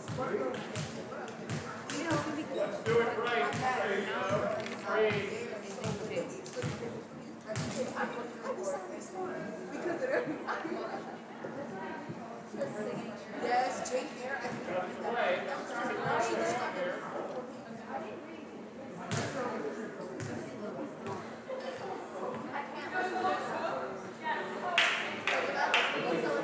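A volleyball smacks off hands and the floor.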